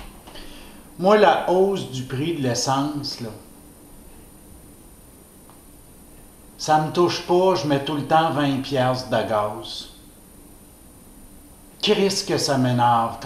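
A man speaks calmly and close by, pausing between phrases.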